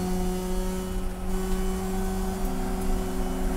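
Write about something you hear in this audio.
A racing car's engine dips briefly in pitch and then climbs again as the car shifts gear.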